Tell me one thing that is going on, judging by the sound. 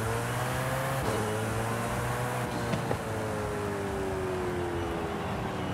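A sports car engine hums at high revs, its pitch slowly dropping.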